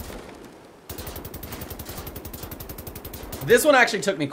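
A machine gun fires rapidly in a fast stream of shots.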